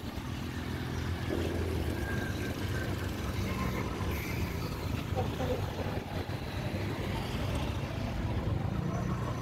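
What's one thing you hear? Auto rickshaw engines rattle nearby.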